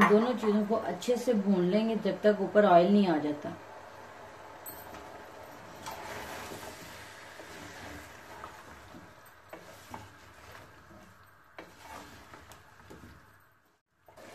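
A wooden spoon stirs and scrapes inside a metal pot.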